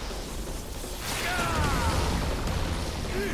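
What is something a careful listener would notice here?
A blade whooshes and electricity crackles.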